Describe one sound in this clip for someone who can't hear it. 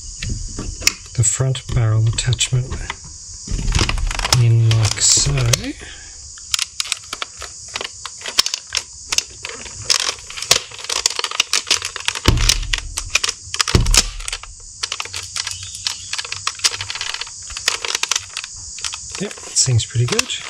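Plastic parts of a toy blaster click and rattle as they are handled.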